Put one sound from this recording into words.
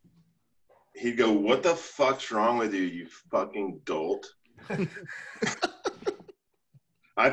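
A bearded man talks calmly over an online call.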